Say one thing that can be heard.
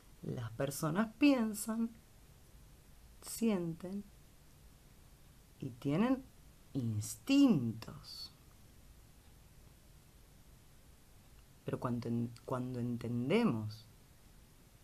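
A woman speaks calmly close to the microphone, in short phrases with pauses.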